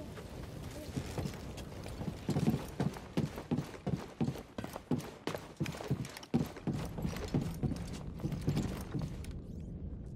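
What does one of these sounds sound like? Footsteps tap quickly on a hard metal floor.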